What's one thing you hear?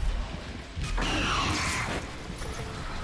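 A monster lets out a loud, rasping screech up close.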